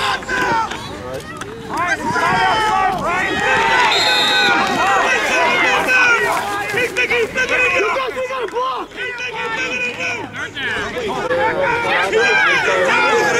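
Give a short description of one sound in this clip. A crowd of boys and adults shouts and cheers outdoors.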